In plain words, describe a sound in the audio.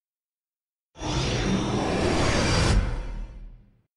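A swirling portal whooshes.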